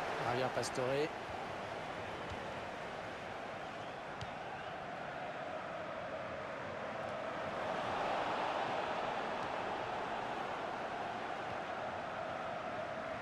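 A stadium crowd roars steadily, swelling louder partway through.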